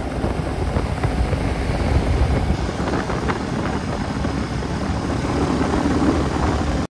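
A motorcycle engine thumps steadily while riding at speed.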